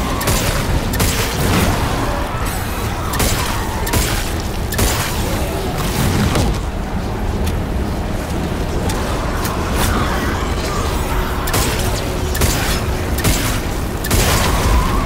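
A monster shrieks and snarls close by.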